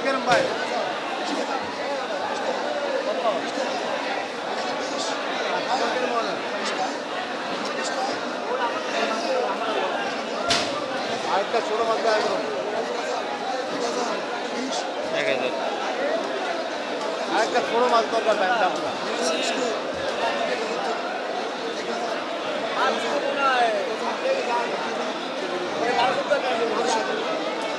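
A crowd of men chatters close by, with many voices overlapping.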